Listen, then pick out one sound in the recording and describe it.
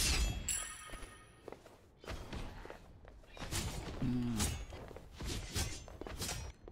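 Explosive blasts and magic effects crash in bursts.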